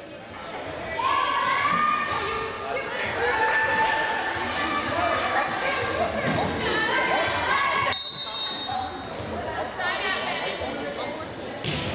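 Young women shout and cheer loudly in a large echoing gym.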